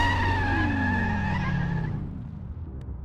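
A car engine winds down in pitch and fades out.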